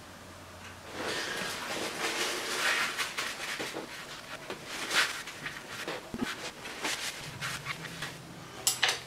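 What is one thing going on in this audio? A cloth rubs and wipes against metal.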